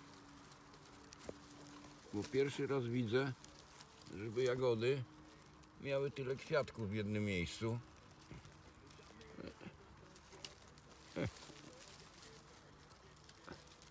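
Leaves rustle softly as a hand pushes through them.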